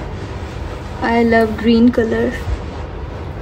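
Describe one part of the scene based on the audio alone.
A young woman speaks briefly and close by in a sing-song voice.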